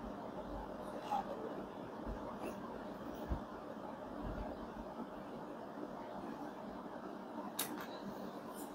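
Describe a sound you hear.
Objects are set down and moved on a hard tabletop with soft knocks.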